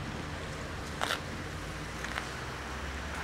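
Footsteps tread on pavement outdoors.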